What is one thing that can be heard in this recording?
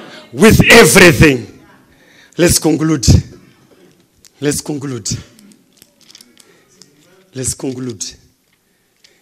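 A man preaches loudly through a microphone in a large echoing hall, speaking in short emphatic bursts.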